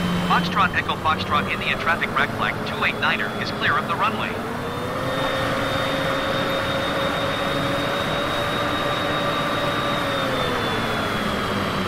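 A jet engine whines steadily, rising in pitch and later easing off.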